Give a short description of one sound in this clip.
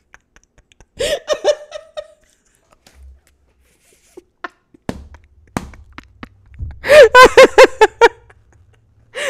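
A young woman laughs loudly into a close microphone.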